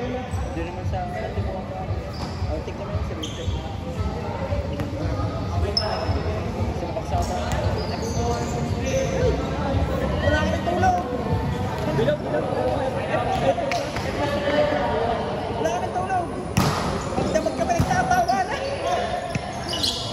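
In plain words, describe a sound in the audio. Young men and women talk and shout nearby, echoing in a large open hall.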